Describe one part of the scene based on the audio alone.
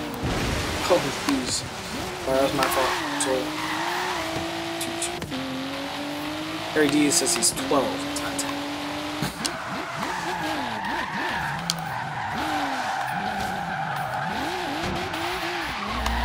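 Tyres screech as a game car drifts round bends.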